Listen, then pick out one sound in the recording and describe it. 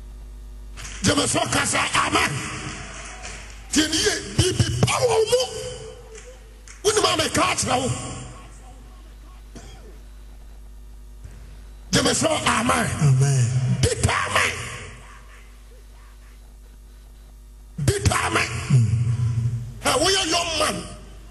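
A man preaches forcefully into a microphone, with echo in a large hall.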